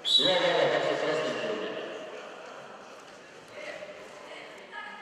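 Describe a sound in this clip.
A crowd cheers and shouts in a large echoing hall, then quiets down.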